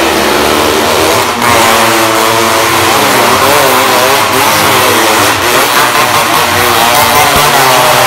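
A car engine roars as the car circles close by.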